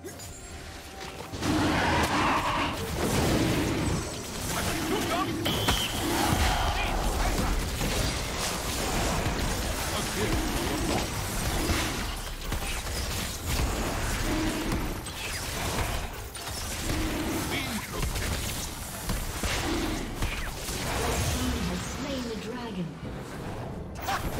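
Video game combat effects whoosh, crackle and thump in quick succession.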